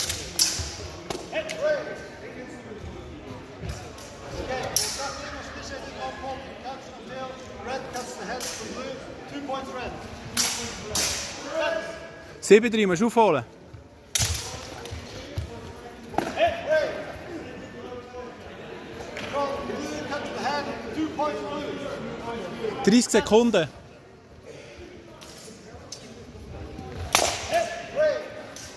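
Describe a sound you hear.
A young man calls out loudly in a large echoing hall.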